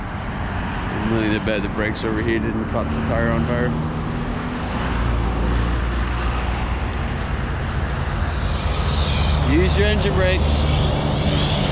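A vehicle engine hums steadily with road noise.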